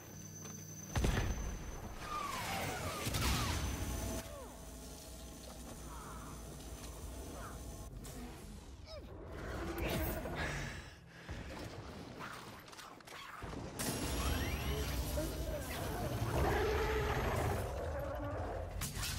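Pistol shots fire in rapid bursts.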